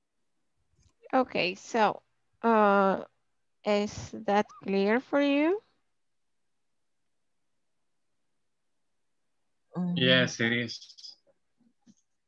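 A woman speaks calmly over an online call, in short bursts.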